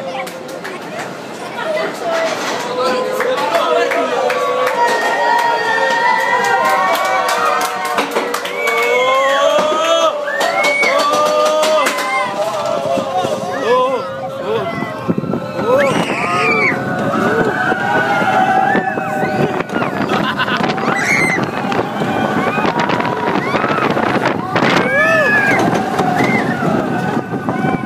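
A man close to the microphone shouts and laughs with excitement.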